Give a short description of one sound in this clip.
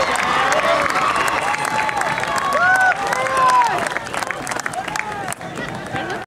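A crowd cheers and whoops nearby.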